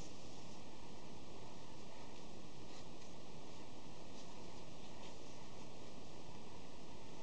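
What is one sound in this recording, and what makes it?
Hands rustle and handle soft yarn close by.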